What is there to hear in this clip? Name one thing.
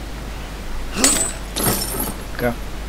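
Bolt cutters snap through a metal chain.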